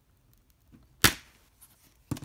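A plastic disc case snaps open with a sharp click.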